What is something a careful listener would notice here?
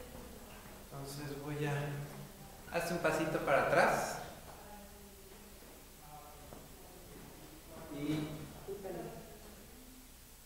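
A man talks nearby in a casual voice.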